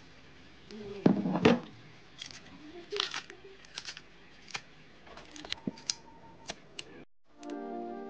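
Wet peels squelch and tear as fingers strip plantains.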